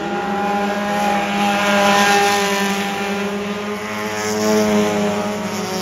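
Engines rise and fall in pitch as cars pass close by.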